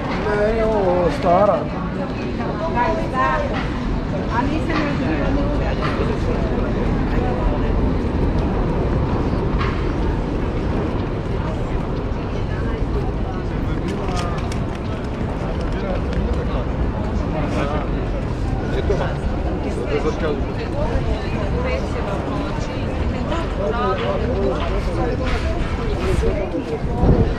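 A crowd of people chatter in a busy open square.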